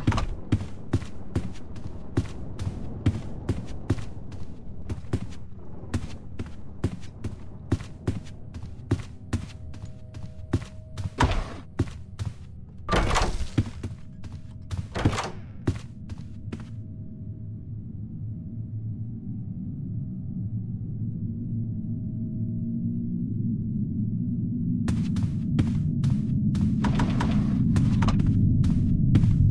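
Footsteps tap quickly on a wooden floor.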